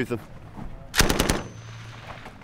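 A machine gun fires a short burst.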